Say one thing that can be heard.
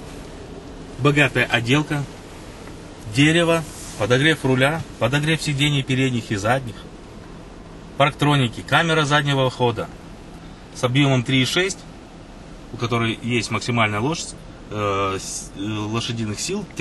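A man speaks calmly and steadily, close by.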